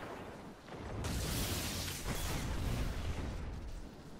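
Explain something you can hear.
A futuristic energy gun fires in loud, rushing bursts.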